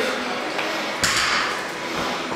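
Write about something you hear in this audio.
A heavy barbell drops onto a rubber floor with a loud thud.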